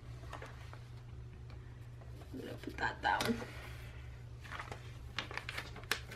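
Paper rustles and crinkles as pages are handled.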